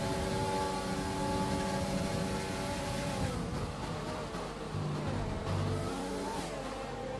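A racing car engine screams at high revs, then drops in pitch as it slows for a corner.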